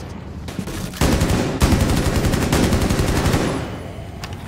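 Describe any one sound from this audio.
An automatic rifle fires in bursts.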